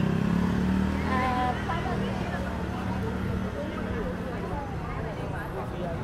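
A busy crowd chatters nearby outdoors.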